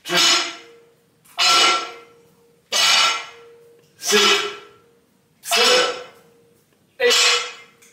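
Weight plates on a barbell clank sharply against the floor in a steady rhythm, each clank ringing briefly.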